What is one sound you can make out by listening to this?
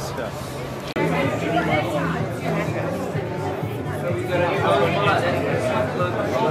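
A crowd of people murmurs and chats indoors.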